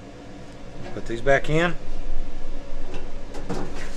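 A metal basket scrapes as it slides shut.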